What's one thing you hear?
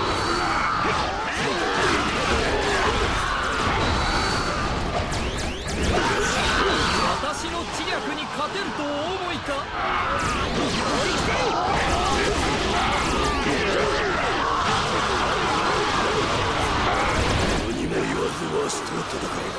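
Swords clash and strike soldiers in a busy battle.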